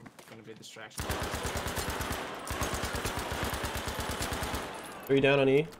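A rapid burst of automatic gunfire rattles on and on.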